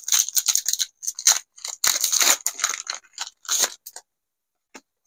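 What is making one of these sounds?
Foil packaging crinkles and tears as hands open a card pack.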